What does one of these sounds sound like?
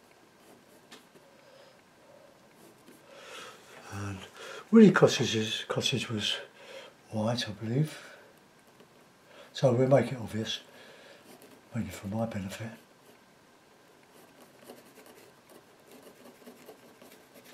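A paintbrush strokes softly across a painted board.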